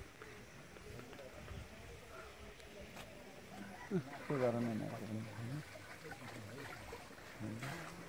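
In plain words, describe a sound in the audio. Water laps gently against boats.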